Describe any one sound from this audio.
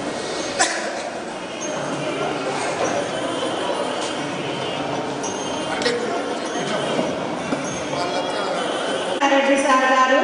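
A crowd of men chatters nearby.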